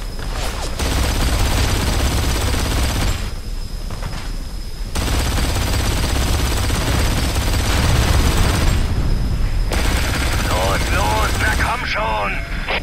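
A heavy machine gun fires in long, rapid bursts.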